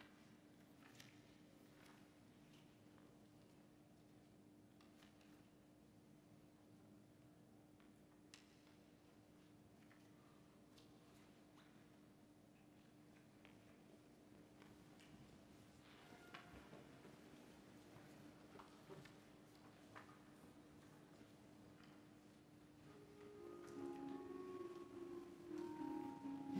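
Faint shuffles and small knocks echo through a large, quiet hall.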